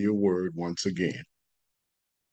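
An elderly man speaks calmly into a microphone over an online call.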